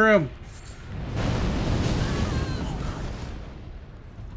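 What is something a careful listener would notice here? Flames roar and crackle in a sudden burst.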